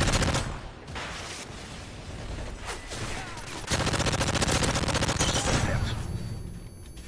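Rapid gunfire bursts and crackles.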